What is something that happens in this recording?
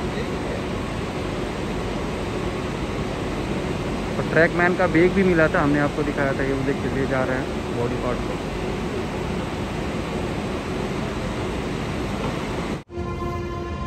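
A train engine rumbles steadily nearby.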